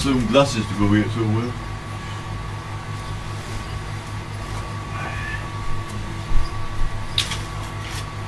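Objects rustle and clatter as a young man rummages.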